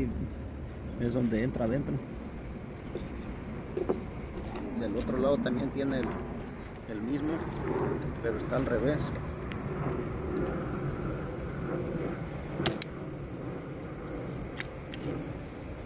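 Plastic parts of a car door latch click and rattle as they are fitted together.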